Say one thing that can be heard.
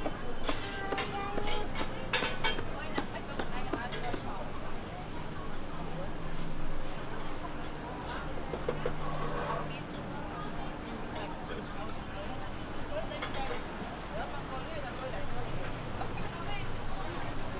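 A crowd of people chatters in a busy outdoor space.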